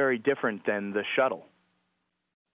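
A man speaks into a microphone, heard over a radio link.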